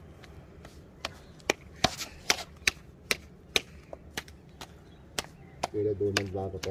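Soft dough slaps sharply between a man's palms.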